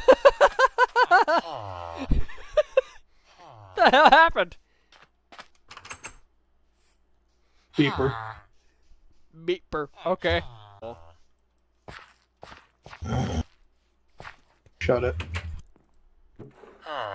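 A cartoonish game villager makes repeated nasal grunts.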